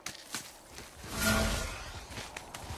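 A body slides down a rocky face with a rushing scrape.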